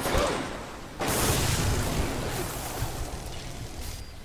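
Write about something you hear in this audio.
An electric bolt crackles and zaps.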